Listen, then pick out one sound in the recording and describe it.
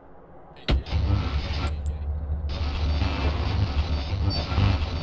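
A car engine idles with a low rumble.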